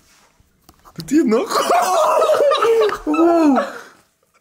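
Two young men laugh loudly.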